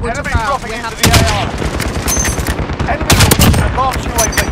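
A sniper rifle fires sharp single shots in a video game.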